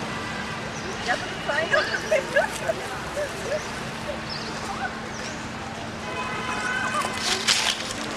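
A baby monkey squeaks in short high calls.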